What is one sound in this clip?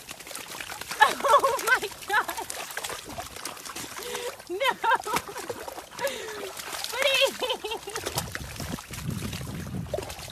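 Thick mud squelches and sloshes as a dog wades through it.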